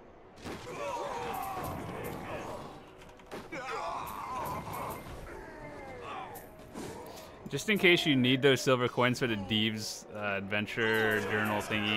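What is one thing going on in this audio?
Game combat effects clash and whoosh.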